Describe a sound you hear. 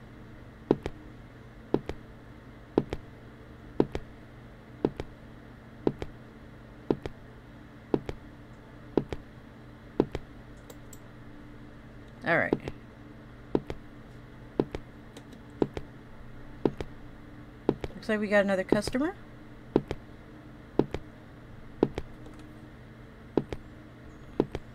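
Footsteps fall at a steady walking pace on a hard floor.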